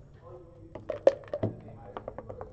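Dice clatter and tumble across a wooden board.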